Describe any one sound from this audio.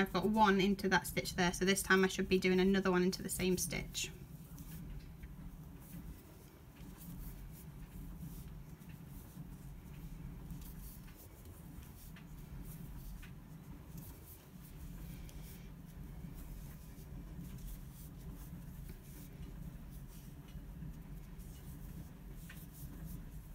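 A crochet hook softly rustles and clicks through yarn.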